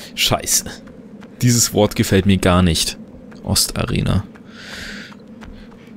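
Footsteps tap on stone stairs.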